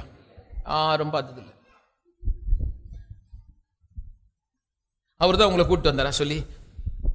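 An elderly man preaches with animation through a microphone.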